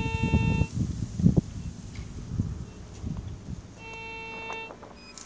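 A metal detector gives off a steady electronic tone.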